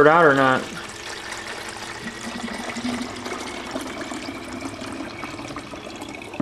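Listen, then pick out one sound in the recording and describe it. Water pours steadily into a plastic jug.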